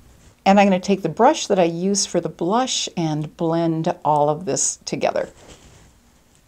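An elderly woman speaks calmly and clearly, close to a microphone.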